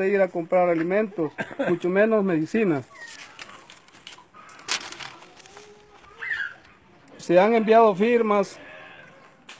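A man speaks loudly and with animation close by, outdoors.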